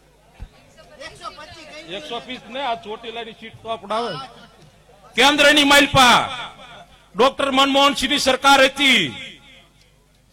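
A middle-aged man speaks forcefully into a microphone over loudspeakers.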